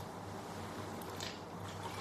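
A young man gulps a drink from a bottle.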